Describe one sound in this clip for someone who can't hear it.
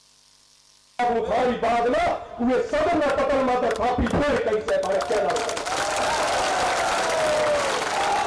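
A young man gives a loud, impassioned speech through a microphone and loudspeakers.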